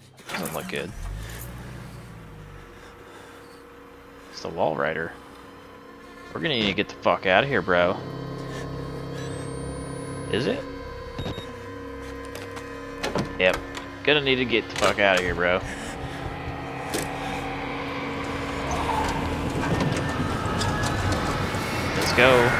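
A car engine starts and then idles with a steady low hum.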